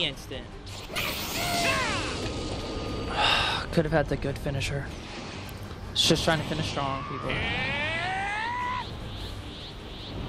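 A fiery energy aura roars and crackles in bursts.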